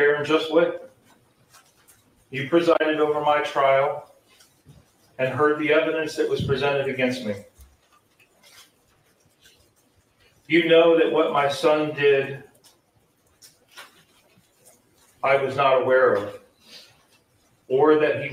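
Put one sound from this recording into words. A man reads aloud slowly and haltingly, through a microphone in a large room.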